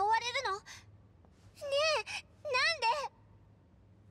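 A young girl asks anxiously, close by.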